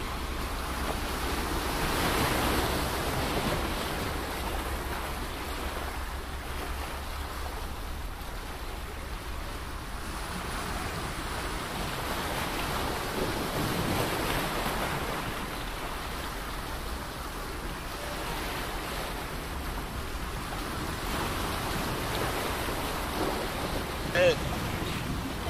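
Small waves wash onto a beach in slow, repeated swells.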